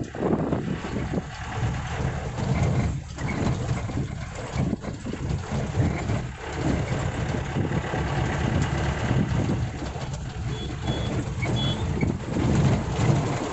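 Tyres roll over a rough road.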